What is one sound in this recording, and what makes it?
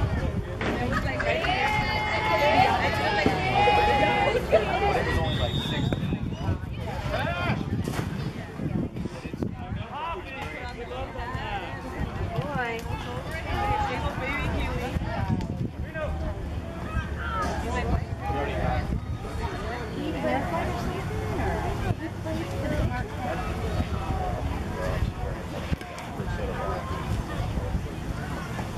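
Young girls chant and call out loudly outdoors.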